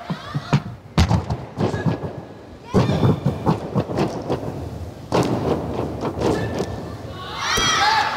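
A trampoline bed thumps and creaks as an athlete bounces on it.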